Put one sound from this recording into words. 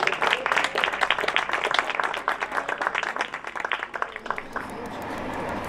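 A crowd applauds with lively clapping.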